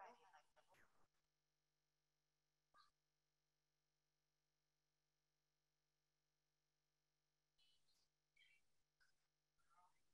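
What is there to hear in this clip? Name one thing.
A woman speaks into a microphone, heard faintly.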